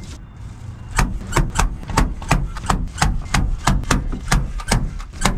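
A staple gun snaps repeatedly into a wall.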